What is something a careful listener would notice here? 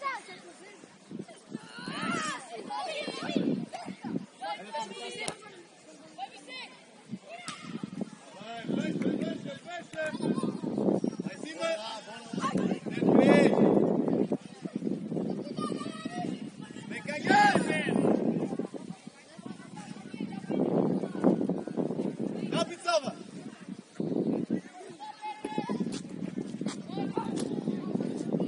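Young players shout to each other across an open outdoor field.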